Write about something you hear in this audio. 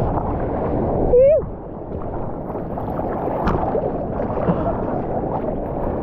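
A hand paddles through seawater with splashes.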